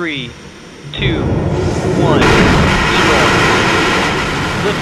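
Falcon 9 rocket engines ignite and roar on the launch pad.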